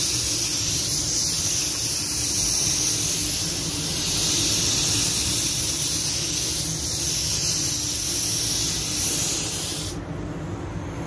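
A spray gun hisses steadily as it sprays paint.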